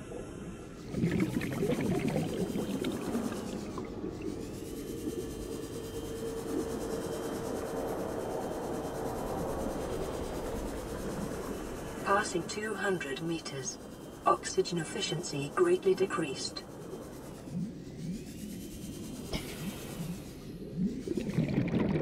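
Bubbles gurgle and fizz.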